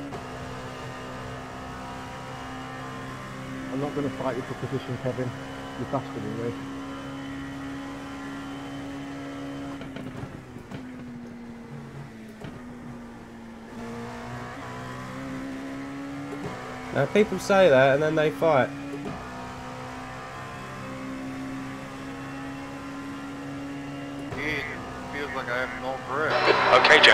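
A racing car engine drones steadily, shifting pitch through the gears.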